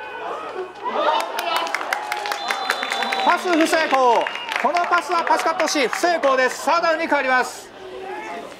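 A crowd of young men shouts and cheers loudly nearby.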